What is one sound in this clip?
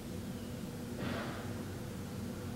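A man breathes out softly nearby.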